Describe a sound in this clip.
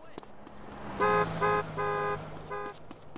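A car horn honks several times nearby.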